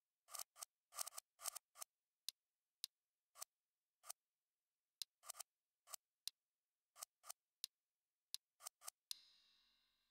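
Short soft clicks tick in quick, uneven succession.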